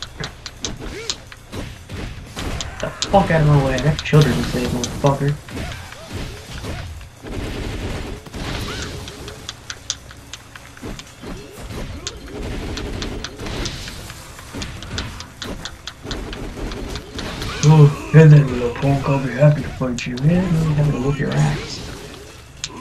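Energy blasts whoosh loudly.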